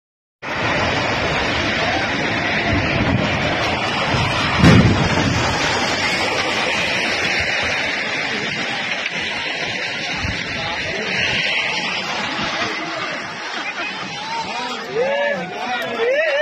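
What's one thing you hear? A huge structure collapses into water with a deep, roaring rumble.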